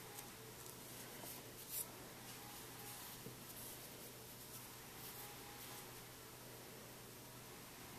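Yarn rustles softly as a needle is pulled through knitted fabric.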